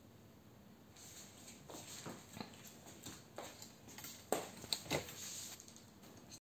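Clothing rustles and something knocks sharply close by.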